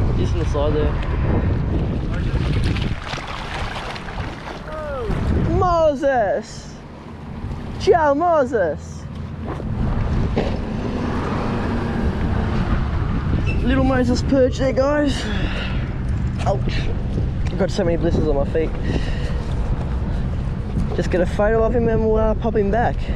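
Water laps and splashes against a wall.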